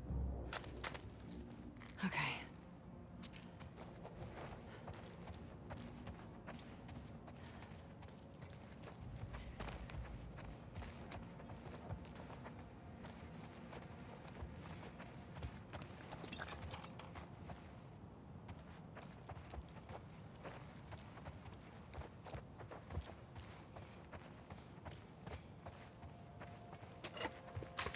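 Footsteps patter quickly over a hard floor.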